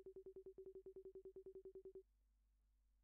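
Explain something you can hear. Rapid, evenly spaced electronic blips tick in a steady stream, then stop.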